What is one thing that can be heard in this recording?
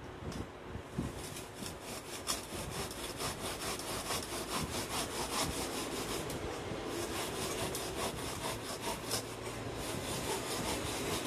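A serrated blade scrapes back and forth, sawing through a soft board.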